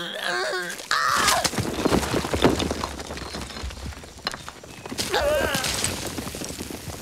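Rocks crash and tumble down.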